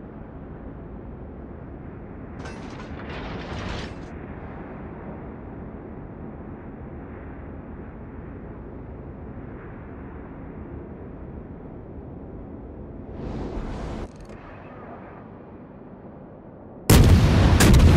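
A ship's engine rumbles low and steady over the sea.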